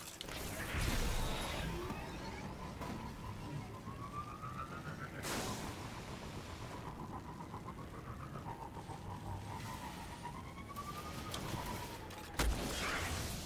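An engine hums and whines steadily.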